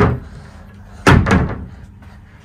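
A wooden wardrobe door thumps shut.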